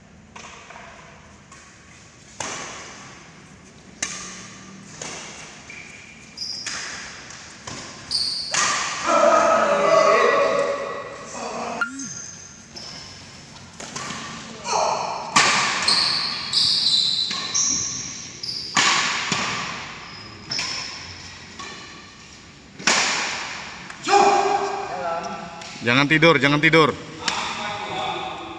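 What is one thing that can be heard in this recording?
Rackets strike a shuttlecock in quick rallies, echoing in a large hall.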